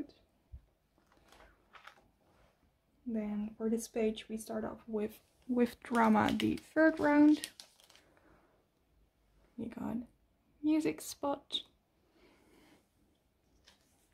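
Plastic binder sleeves crinkle as pages are turned.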